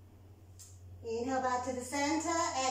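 A woman speaks calmly close to a microphone, giving instructions.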